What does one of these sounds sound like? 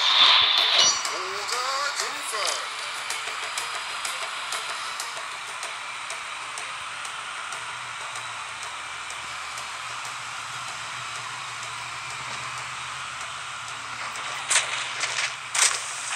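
A water blaster fires in quick bursts.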